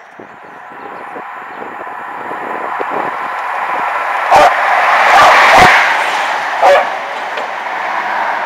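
A train rumbles past close by, growing louder as it nears.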